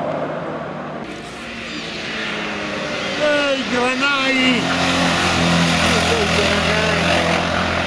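A rally car engine revs up and down as the car climbs and passes close by.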